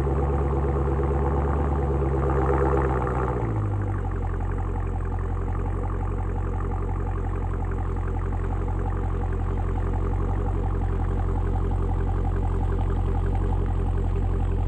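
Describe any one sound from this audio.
A car engine rumbles deeply through its exhaust, revving briefly and then settling to a steady idle.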